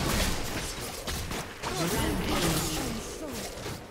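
Video game spell effects burst and crackle during a fight.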